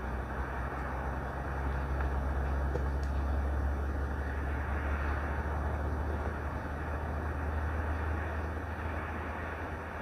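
Wind blows steadily outdoors, rumbling low against the microphone.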